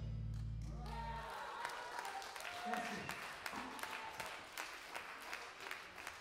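A drummer hits the drums and cymbals hard.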